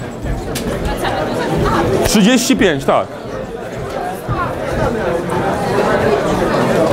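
A crowd of people chatter in a large room.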